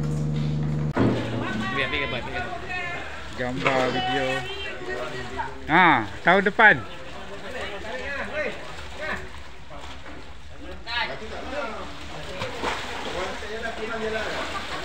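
Men talk and call out loudly nearby.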